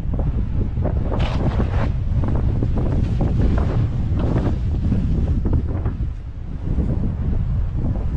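Wind rumbles loudly across a microphone.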